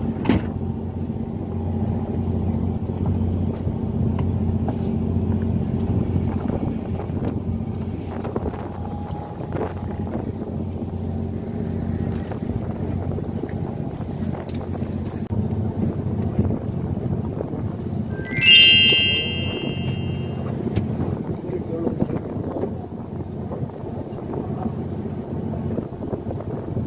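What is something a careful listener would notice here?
A boat's engine hums low and steady.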